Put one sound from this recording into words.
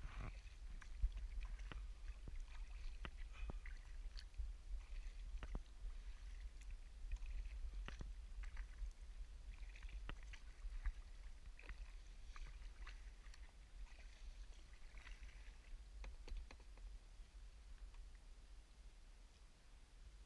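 Water laps softly against a kayak's hull.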